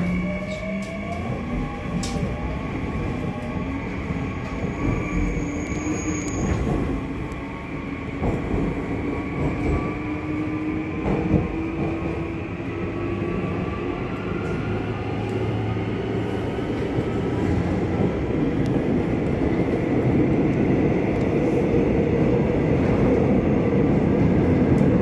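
A subway train rumbles along the tracks, its whine rising in pitch as it speeds up.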